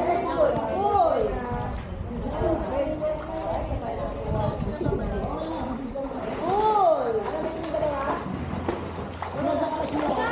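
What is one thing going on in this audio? Children shout and call out playfully outdoors.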